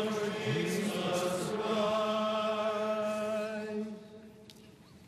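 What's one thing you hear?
A man chants in a sustained singing voice through a microphone in a large echoing hall.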